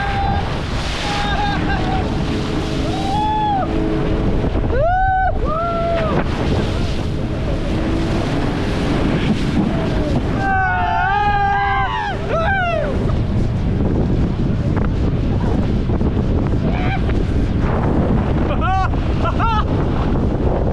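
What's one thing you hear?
Young men shout and whoop excitedly up close.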